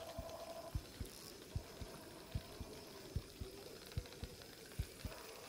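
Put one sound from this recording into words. A fishing reel clicks steadily as line is wound in.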